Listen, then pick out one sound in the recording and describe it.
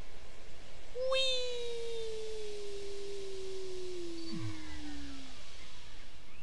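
A whistling tone slides steadily downward as something rushes down a chute.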